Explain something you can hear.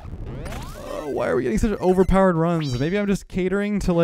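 A bright electronic jingle plays as a game boss is beaten.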